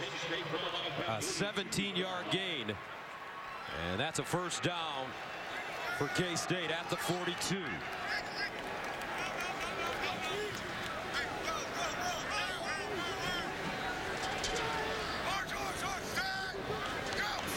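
A large crowd murmurs and cheers in an open stadium.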